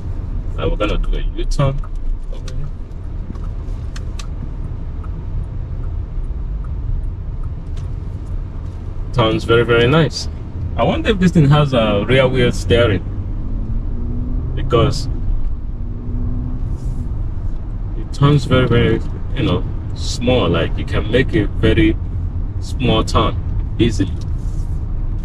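A car engine hums low and steady inside the car.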